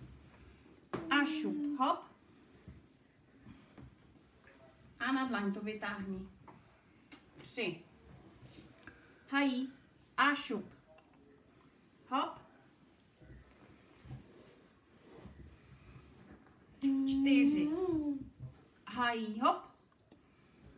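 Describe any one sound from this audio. A woman speaks calmly and encouragingly close by.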